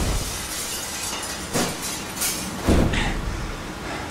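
Broken glass shards tinkle and clatter onto the floor.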